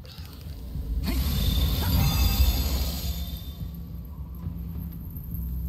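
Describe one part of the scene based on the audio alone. A glowing spell hums and sparkles.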